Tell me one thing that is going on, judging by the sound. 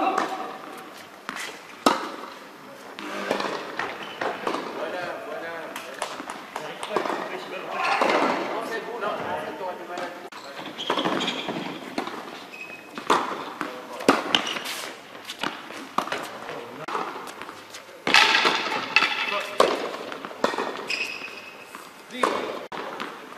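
Tennis balls are struck sharply with rackets in a large echoing hall.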